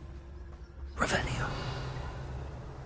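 A magic spell bursts with a bright whoosh.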